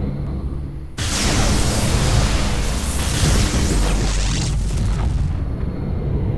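Laser beams fire in a loud, roaring blast.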